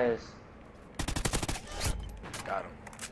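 A rapid burst of gunfire rattles.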